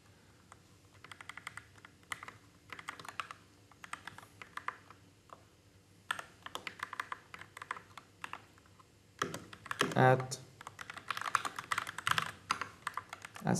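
Keyboard keys click rapidly as someone types.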